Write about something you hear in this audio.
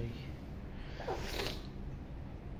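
A parrot gives a short squawk.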